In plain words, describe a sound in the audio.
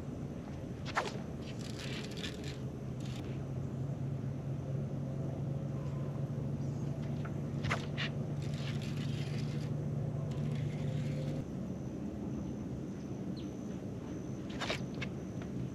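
A fishing reel clicks sharply.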